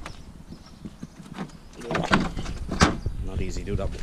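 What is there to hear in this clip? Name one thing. A plastic bin lid knocks and clatters shut.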